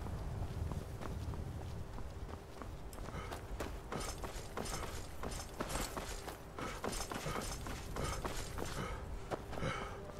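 Footsteps crunch steadily on a stony path.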